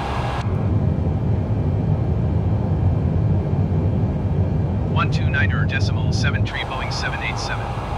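Jet engines drone with a steady low rumble.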